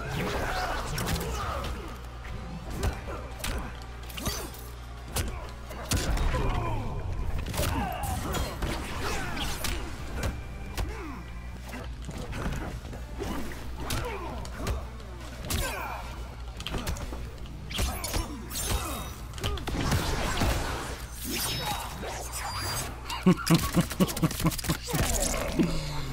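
Heavy punches and kicks land with sharp thuds and smacks.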